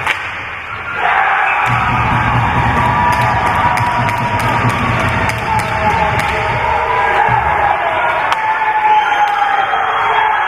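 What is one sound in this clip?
A crowd cheers loudly in an echoing arena.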